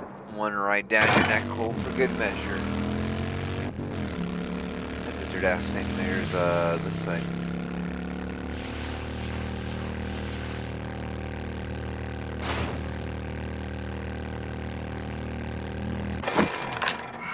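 A motorbike engine starts and revs, then hums steadily while riding.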